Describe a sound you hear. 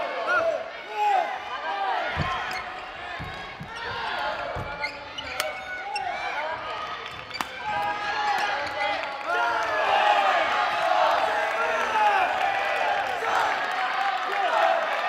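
Sports shoes squeak sharply on a hard indoor court.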